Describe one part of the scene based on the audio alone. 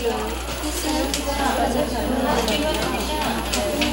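Several women talk quietly into headset microphones.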